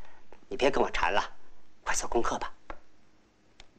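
A man speaks sharply and with animation, close by.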